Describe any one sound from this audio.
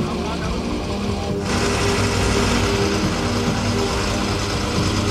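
A heavy truck engine rumbles steadily and grows louder.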